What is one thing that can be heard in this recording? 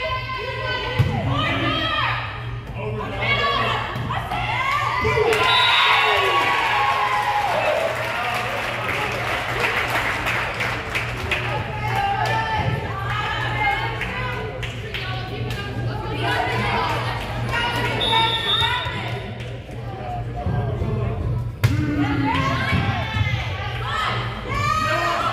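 A volleyball thumps off a player's hands.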